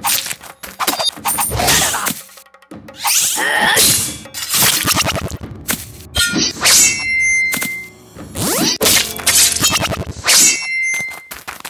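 Metal weapons clash and ring sharply.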